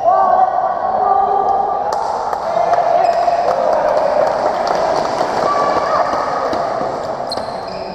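Sports shoes squeak on a wooden court.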